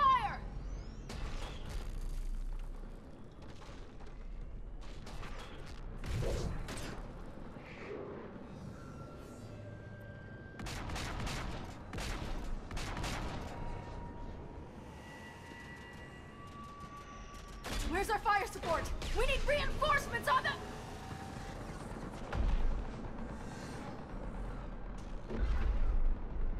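Gunfire crackles in rapid bursts.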